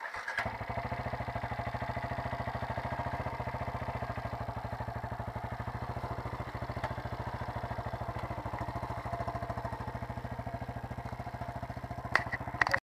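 A motorcycle engine idles close by with a steady, rapid putter.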